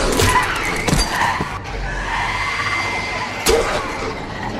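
Heavy blows thud during a close scuffle.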